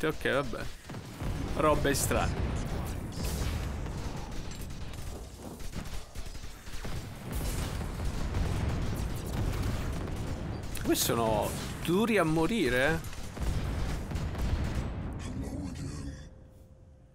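Laser weapons fire and explosions rumble in a battle.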